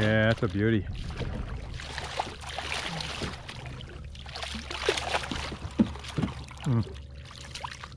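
A fish splashes and thrashes in the water close by.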